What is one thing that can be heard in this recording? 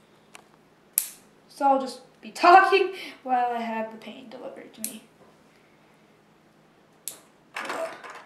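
Wooden clothespins click as they snap open and shut.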